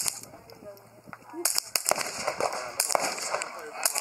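Suppressed pistol shots thump one after another.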